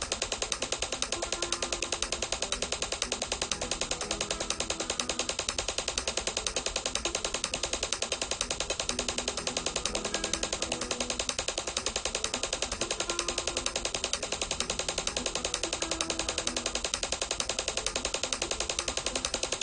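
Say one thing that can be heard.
A metronome ticks in an even beat.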